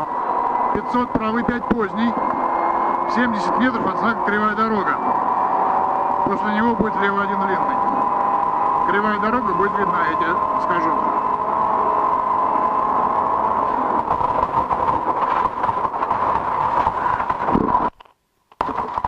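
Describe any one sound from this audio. Gravel crackles and pelts under the tyres.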